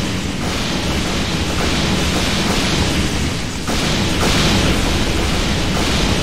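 Lightning bolts crash down with loud cracking blasts.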